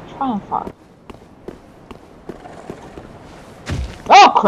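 Footsteps run quickly across stone.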